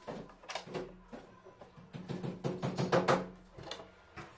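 Wooden beams knock and clatter as they are handled.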